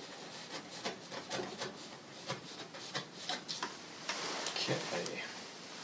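A brush scratches softly across a canvas.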